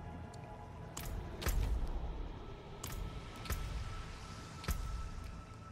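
Game menus open and close with short clicks.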